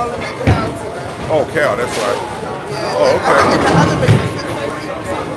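Voices murmur and echo around a large noisy hall.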